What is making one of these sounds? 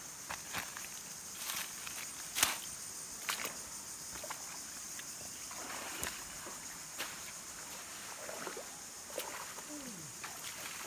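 Footsteps crunch on wet pebbles.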